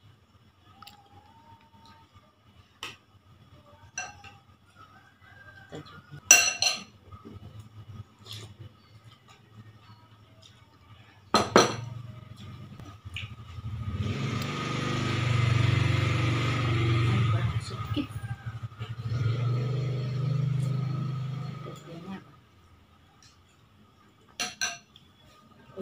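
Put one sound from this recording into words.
A spoon and fork clink against a bowl.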